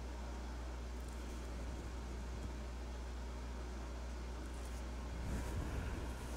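A marker scratches softly across paper.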